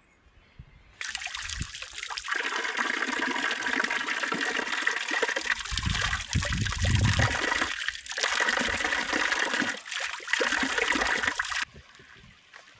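A thin stream of water pours from a spout and splashes into cupped hands.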